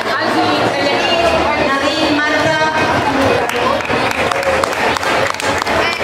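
A woman speaks into a microphone, reading out over a loudspeaker in a large echoing hall.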